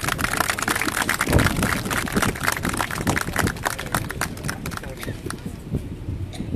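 A crowd applauds outdoors.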